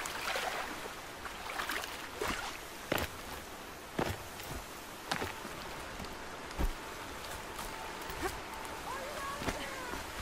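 Water splashes as a figure wades through a shallow stream.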